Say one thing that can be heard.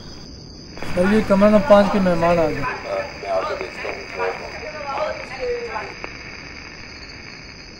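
A man's voice crackles over a walkie-talkie.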